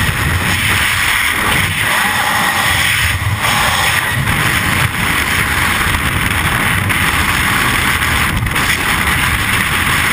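Wind roars loudly around a falling skydiver.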